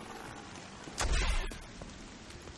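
Gunfire bursts out loudly at close range.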